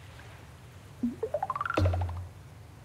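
A rising series of quick chimes climbs in pitch as a casting meter fills.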